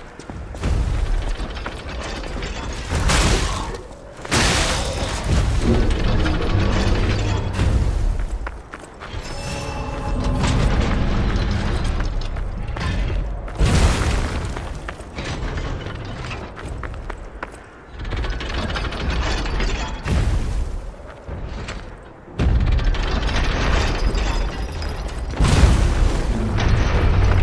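Heavy mechanical footsteps thud and clank.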